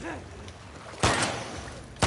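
A creature shrieks close by.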